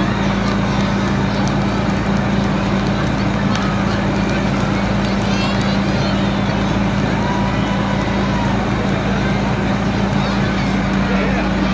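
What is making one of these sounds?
Water sprays hard from a fire hose outdoors.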